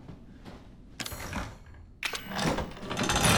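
A heavy wooden door rattles and creaks open.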